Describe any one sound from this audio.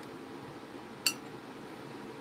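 A paintbrush is set down on a table with a sharp click.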